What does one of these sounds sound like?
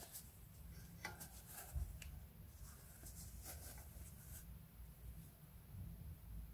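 A crochet hook rustles and scrapes softly through thick yarn.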